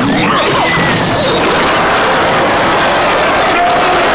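A magic spell whooshes and bursts.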